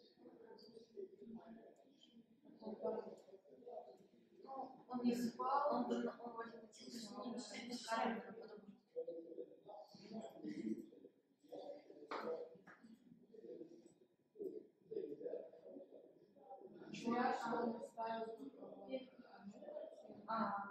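A young woman talks calmly nearby.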